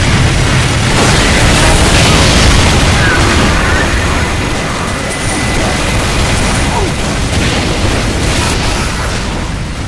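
Explosions and gunfire crackle nearby.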